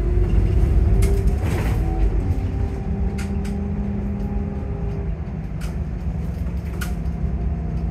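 The bus body rattles and clicks over the road.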